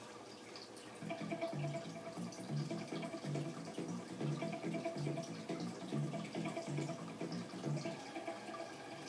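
Rhythmic music plays through a television's speakers.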